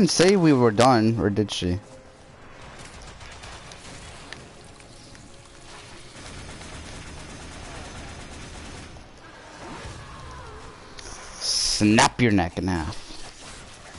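Weapons fire and clash in a fast fight.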